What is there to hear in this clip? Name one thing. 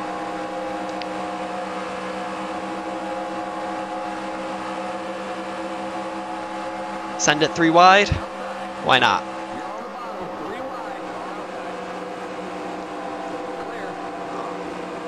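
A racing car engine drones at a steady high pitch.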